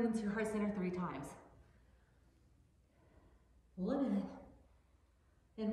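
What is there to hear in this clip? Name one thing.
A woman speaks calmly and clearly, close to a microphone.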